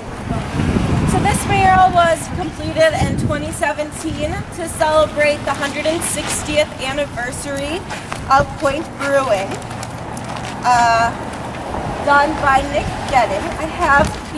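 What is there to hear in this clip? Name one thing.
A young woman speaks calmly and clearly close by, outdoors.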